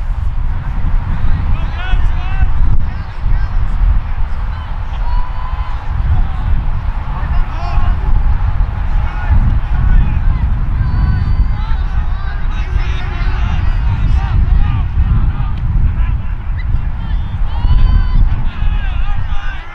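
Young men shout and call out to each other across a field.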